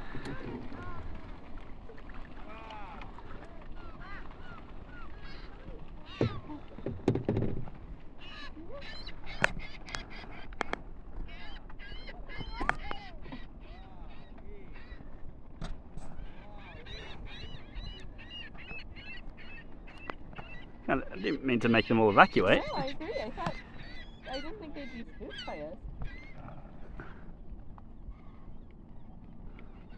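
Many seabirds call and squawk nearby.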